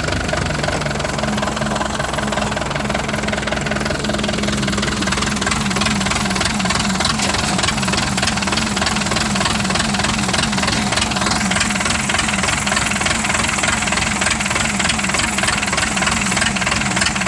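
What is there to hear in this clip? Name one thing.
An engine chugs loudly and steadily close by.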